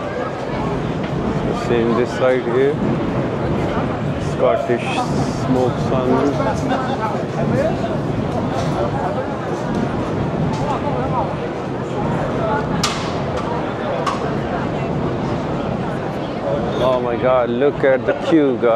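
A crowd of people chatters all around in a busy, echoing hall.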